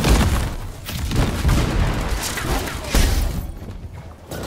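An energy blast crackles and roars.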